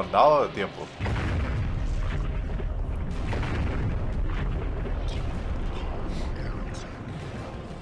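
A deep, steady rumble fills an echoing hall as a huge creature stirs.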